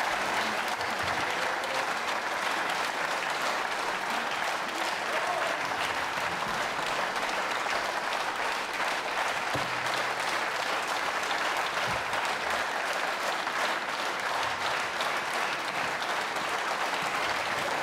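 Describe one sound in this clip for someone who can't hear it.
A large audience applauds steadily outdoors.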